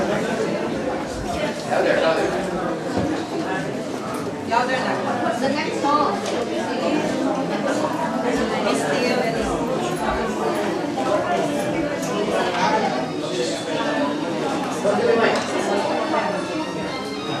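A young girl speaks softly into a microphone.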